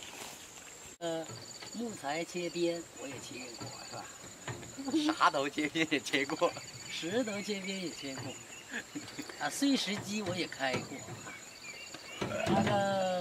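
A young man talks and laughs nearby.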